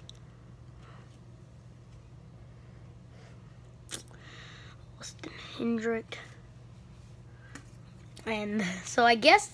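Trading cards slide and rustle softly against each other as they are shuffled by hand.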